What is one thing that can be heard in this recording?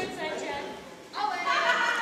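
A young woman shouts with excitement.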